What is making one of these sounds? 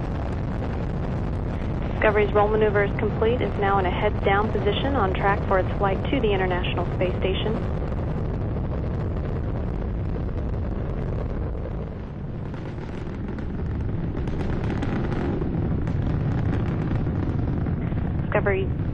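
Rocket engines roar with a deep, steady rumble.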